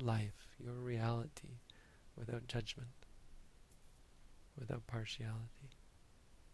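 A man speaks calmly and slowly into a close microphone, with long pauses.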